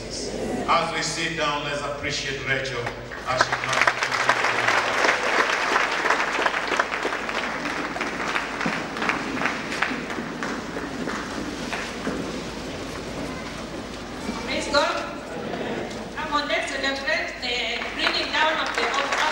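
A man preaches loudly through a microphone and loudspeakers in a large echoing hall.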